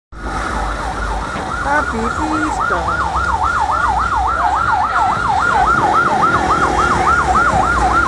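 An ambulance siren wails rapidly up and down nearby.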